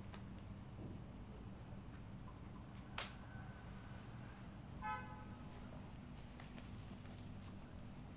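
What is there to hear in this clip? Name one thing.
Hands rub oil together with soft slick sounds.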